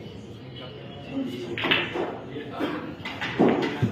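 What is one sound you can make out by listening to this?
A cue strikes a ball with a sharp knock.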